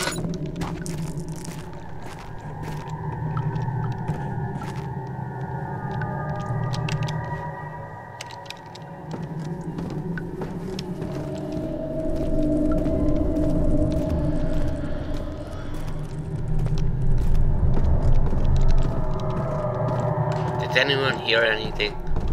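Footsteps thud on wooden stairs and stone floors.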